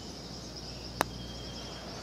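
A putter taps a golf ball with a sharp click.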